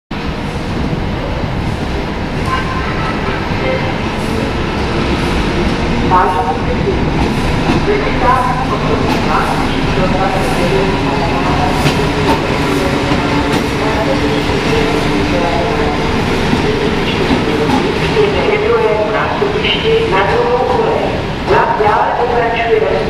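A diesel locomotive engine rumbles and drones steadily.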